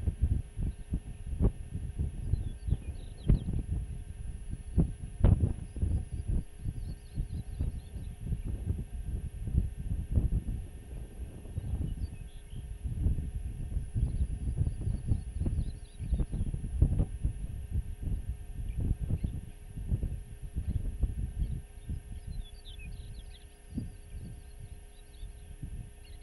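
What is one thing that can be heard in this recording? Wind gusts and buffets across open ground outdoors.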